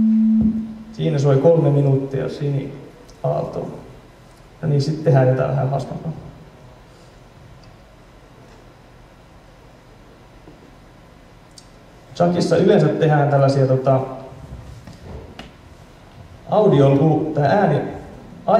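A young man speaks through a microphone in short bursts.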